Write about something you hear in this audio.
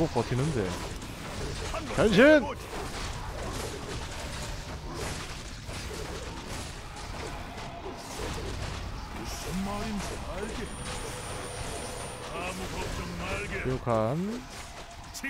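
Weapons clash and clang in a busy fight.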